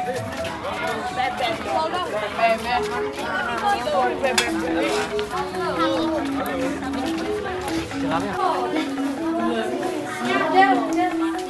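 Children chatter nearby.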